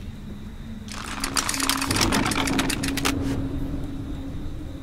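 A winch creaks as a rope winds tight around a spool.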